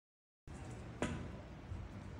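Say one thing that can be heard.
A cue strikes a pool ball.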